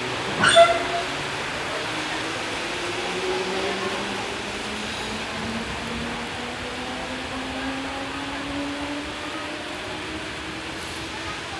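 An electric train's motors whine, rising steadily in pitch as it speeds up.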